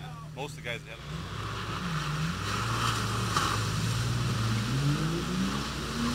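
Muddy water splashes and sloshes.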